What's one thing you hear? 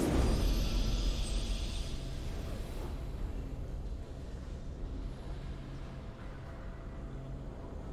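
A triumphant game victory fanfare swells and slowly fades.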